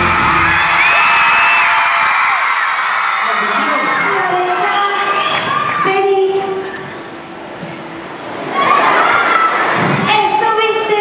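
A crowd of young fans screams and cheers loudly nearby.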